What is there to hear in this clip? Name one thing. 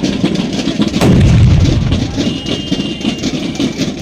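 A musket fires with a loud boom that rumbles away outdoors.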